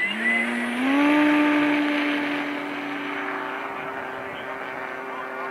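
A model plane's engine drones steadily overhead, slowly fading as it climbs away.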